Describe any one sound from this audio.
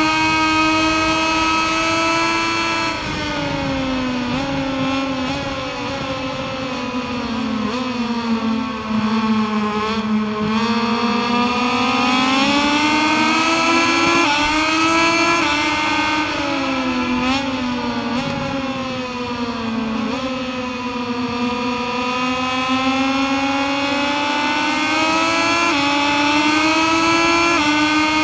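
A motorcycle engine screams at high revs, its pitch falling when braking and rising again on acceleration.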